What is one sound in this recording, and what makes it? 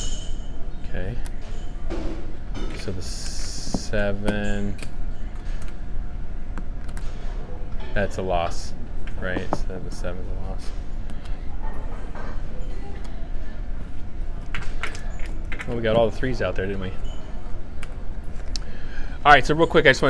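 Casino chips click and clatter as they are stacked on a table.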